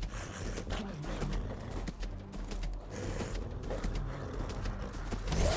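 Video game spell effects whoosh and crackle in quick bursts.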